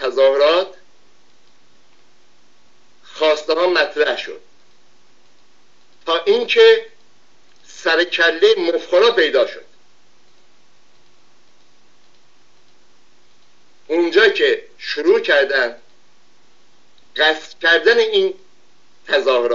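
An elderly man speaks calmly and close to a microphone, in short bursts with pauses.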